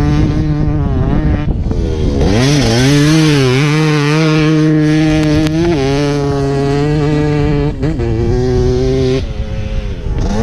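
A dirt bike engine revs loudly, its pitch rising and falling.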